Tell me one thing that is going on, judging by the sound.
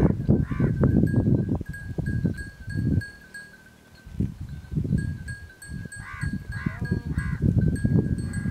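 Sheep bleat nearby.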